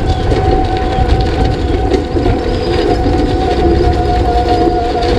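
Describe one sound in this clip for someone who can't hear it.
A small engine drones steadily up close.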